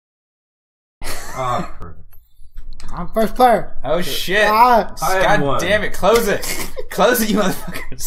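Several men talk and laugh with animation, heard through a microphone.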